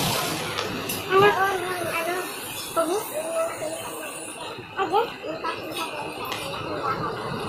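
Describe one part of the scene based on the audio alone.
A young woman talks casually, close to the microphone.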